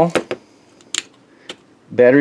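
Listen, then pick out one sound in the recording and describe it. A button clicks on a handheld device.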